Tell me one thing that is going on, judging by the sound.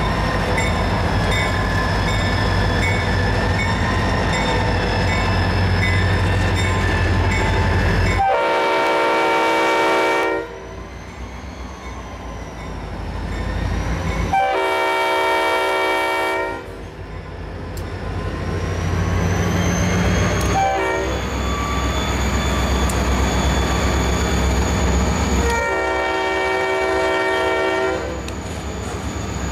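Diesel locomotive engines rumble loudly close by as a train passes.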